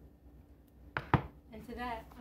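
A bowl knocks onto a counter.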